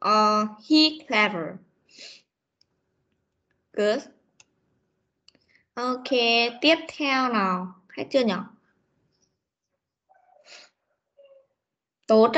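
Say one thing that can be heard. A woman speaks slowly and clearly through an online call, with pauses.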